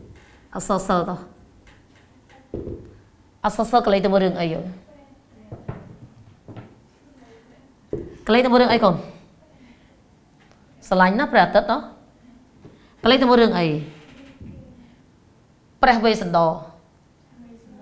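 A woman speaks clearly in short phrases, close to a microphone.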